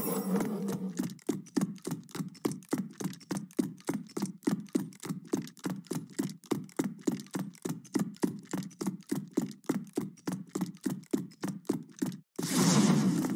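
Quick footsteps patter in a steady running rhythm.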